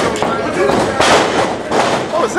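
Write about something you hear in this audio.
A body slams down hard onto a wrestling ring mat.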